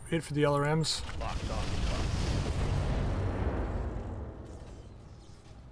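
Heavy guns fire and explode with a deep rumble.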